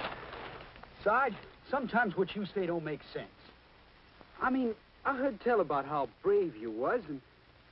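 A young man speaks in a low, urgent voice, close by.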